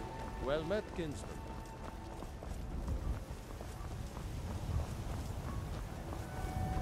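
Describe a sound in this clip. Footsteps tread steadily on cobblestones.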